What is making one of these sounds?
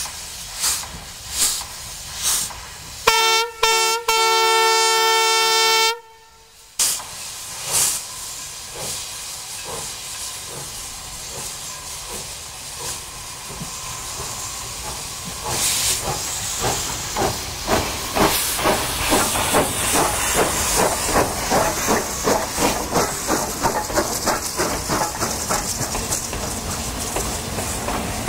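A steam locomotive chuffs in rhythmic puffs that quicken as it pulls away.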